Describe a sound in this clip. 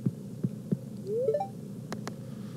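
A short rising chime plays.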